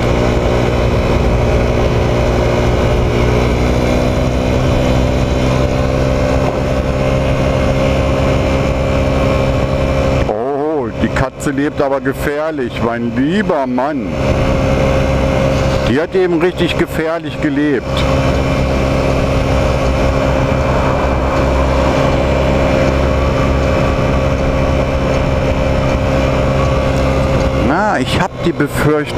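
A scooter engine hums steadily while riding along.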